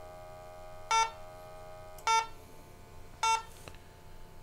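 A handheld detector beeps in short, sharp bursts.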